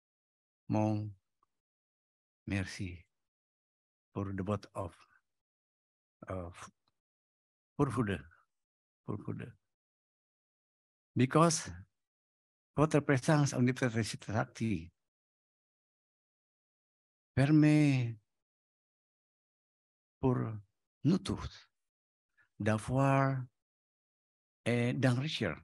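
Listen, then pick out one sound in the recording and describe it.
A man speaks slowly through a microphone, with long pauses.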